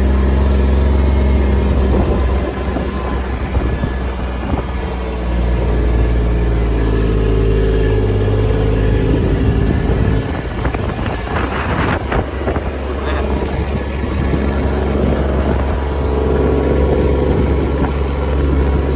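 A utility vehicle's engine hums steadily up close, changing pitch as it drives.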